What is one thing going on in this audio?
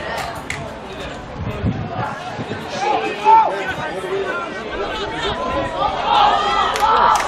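A crowd of young spectators shouts and cheers nearby outdoors.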